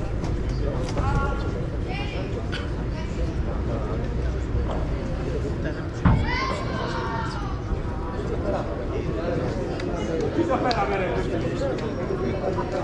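Players call out to each other.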